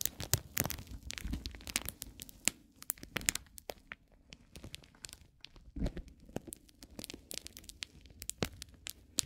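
A wooden fork scratches and taps on crinkly paper up close.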